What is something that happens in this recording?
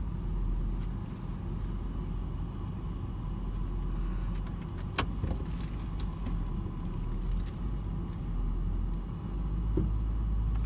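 A car engine idles with a low steady rumble from inside the car.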